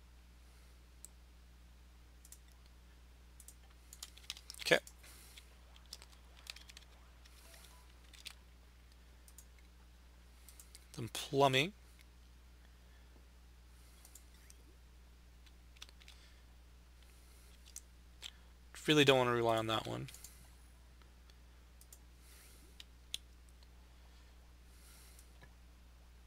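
Soft game interface clicks tick now and then.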